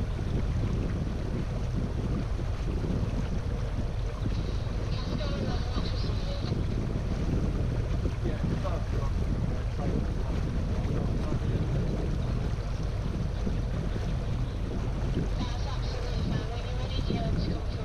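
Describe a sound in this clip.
Water swishes along a boat's hull.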